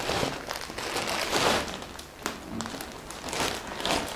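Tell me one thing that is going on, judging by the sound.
Scissors snip through a plastic bag.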